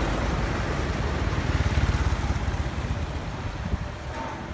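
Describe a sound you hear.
A truck engine rumbles nearby.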